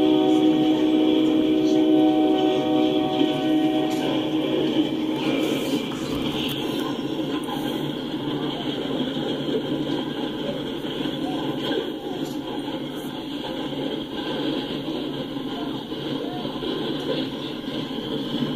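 A freight train rumbles and clatters steadily past, close by.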